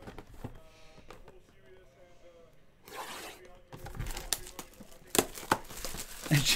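Cardboard packaging rustles and scrapes under hands.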